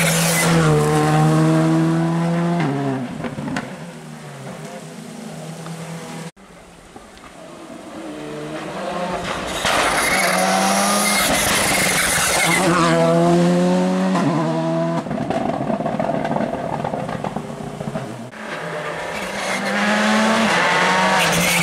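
Rally car engines rev hard and roar past close by, one after another, outdoors.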